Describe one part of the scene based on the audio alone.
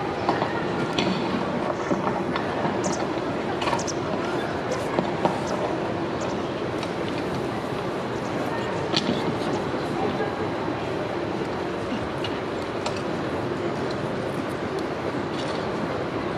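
A young man speaks formally through a microphone in a large echoing space.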